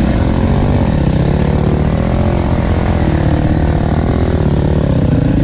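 A dirt bike engine roars loudly up close, revving up and down.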